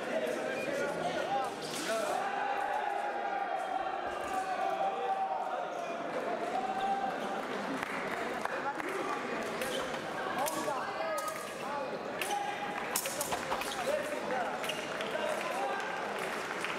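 Fencers' feet shuffle and tap on the floor.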